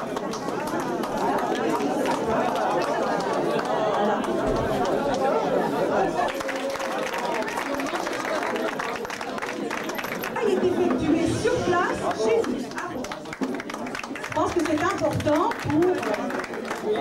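A crowd of men and women chatters and calls out in a busy room.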